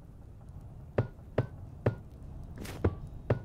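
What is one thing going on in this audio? Blocks are set down with short knocks.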